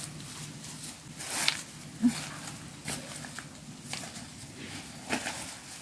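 Footsteps rustle on grass close by.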